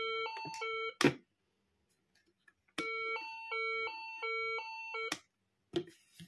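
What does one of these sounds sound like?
A finger presses and clicks a plastic toy button.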